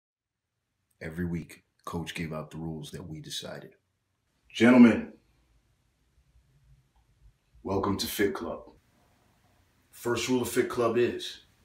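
Men speak with animation, in short bursts close to a microphone.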